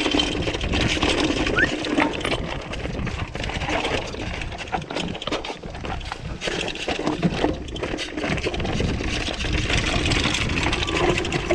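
Bike tyres crunch and rattle over loose rocks.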